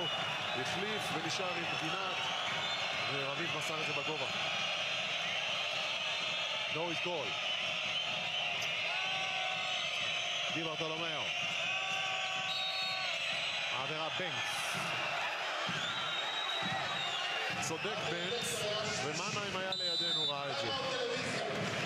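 A large crowd cheers and roars steadily in an echoing arena.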